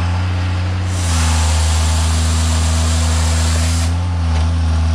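A chainsaw bar buzzes loudly through a log.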